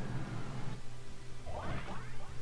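A burst of impact hits lands.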